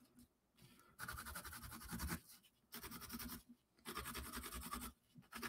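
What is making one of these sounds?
A pencil scratches across paper in quick strokes.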